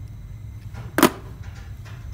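Wire cutters snip through a thin wire with a sharp click.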